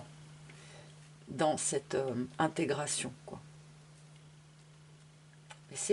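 A hand slides cards softly across a cloth.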